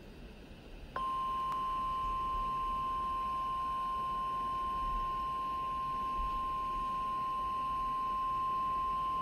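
A weather radio gives out a long, steady, piercing alarm tone.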